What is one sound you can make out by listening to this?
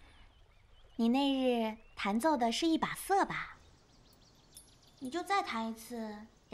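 A young woman speaks loudly and with animation, close by.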